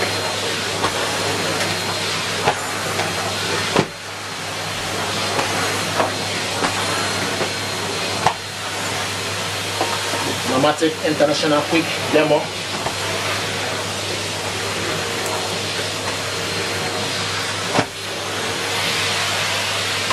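A vacuum nozzle scrapes and knocks across carpet.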